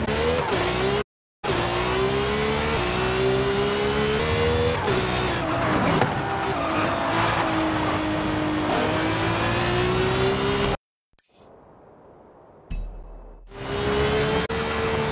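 A sports car engine roars at high speed, its pitch shifting as it changes gear.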